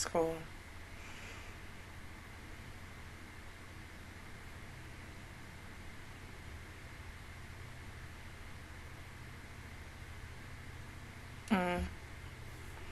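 A young woman makes a short humming sound close to a microphone.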